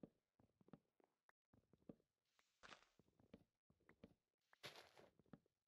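Soft footsteps rustle through leaves.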